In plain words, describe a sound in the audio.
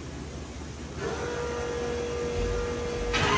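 A high whine starts up over the engine and holds steady.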